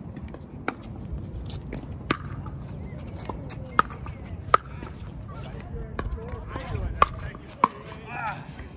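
Paddles hit a plastic ball with sharp pops back and forth.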